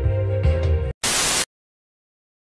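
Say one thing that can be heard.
Static hisses loudly in a short burst.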